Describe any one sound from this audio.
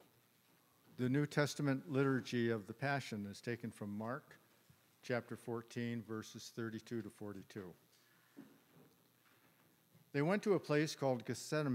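An older man reads aloud calmly into a microphone in an echoing room.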